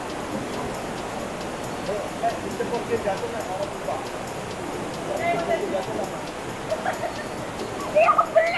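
A small waterfall rushes steadily into a pool.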